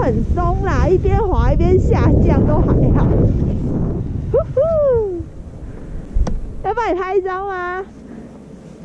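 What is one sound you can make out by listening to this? Skis hiss and scrape over snow, slowing to a stop.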